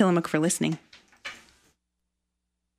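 A young woman speaks brightly and close into a microphone.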